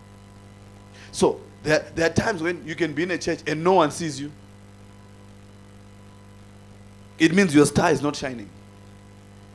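An adult man preaches with animation through a microphone, in short bursts with pauses.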